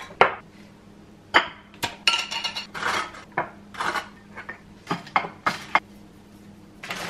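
Hands clink jars and dishes on a hard counter.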